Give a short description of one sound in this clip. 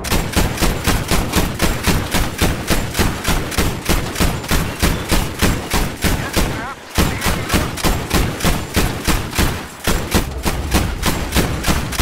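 Explosions boom in the air.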